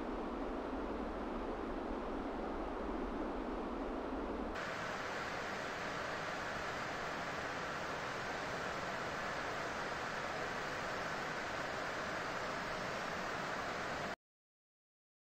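Wind rushes steadily past a gliding aircraft.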